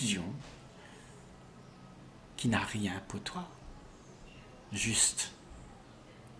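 An elderly man speaks calmly and warmly, close by, in short phrases.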